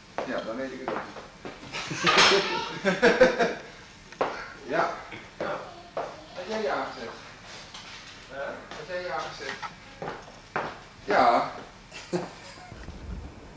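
Men talk casually nearby indoors.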